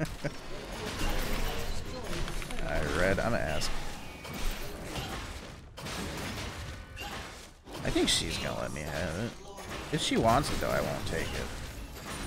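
Sharp hits clash during combat.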